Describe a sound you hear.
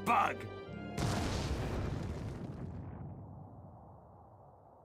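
A heavy stomp crashes into the ground with a booming rumble that slowly fades.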